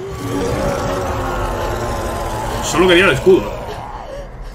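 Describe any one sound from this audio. A huge creature roars loudly.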